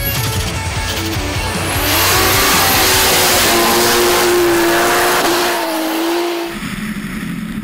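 A Toyota Supra drift car's engine revs hard as it slides sideways.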